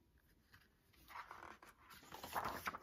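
A book page rustles as it turns.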